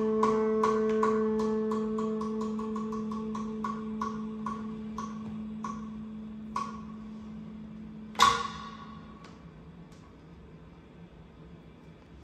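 Music from a vinyl record plays through floor-standing loudspeakers, with plucked notes that ring and fade.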